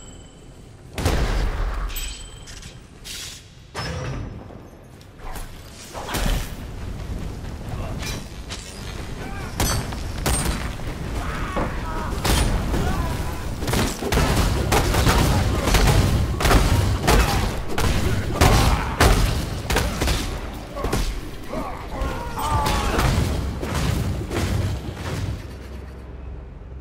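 Weapon hits thud and clash against monsters.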